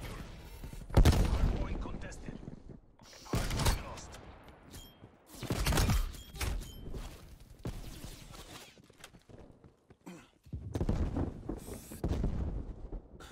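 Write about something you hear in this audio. Sniper rifle shots boom loudly with a rolling echo.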